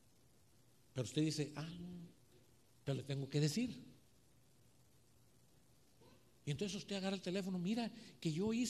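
A man preaches with animation through a microphone, in bursts with pauses.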